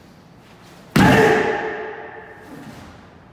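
A young woman shouts a sharp cry that echoes through a large hall.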